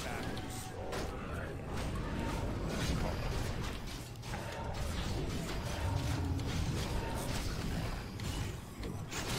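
Game spells burst with sharp bangs.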